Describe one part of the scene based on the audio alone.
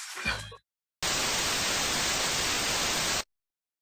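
Television static hisses loudly and steadily.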